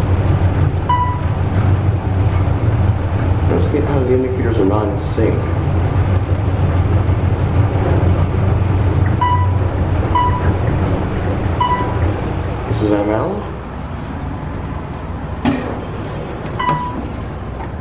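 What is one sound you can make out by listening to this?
An elevator chime dings softly several times.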